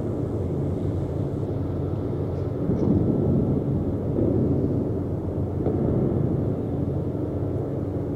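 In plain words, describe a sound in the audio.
Waves wash against a warship's hull.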